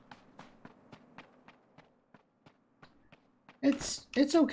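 Quick footsteps crunch over snow.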